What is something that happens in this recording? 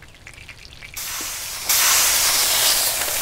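Meat sizzles loudly on a hot grill.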